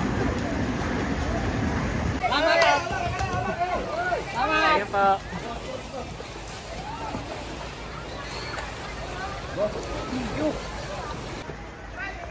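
Floodwater swishes as people wade through it.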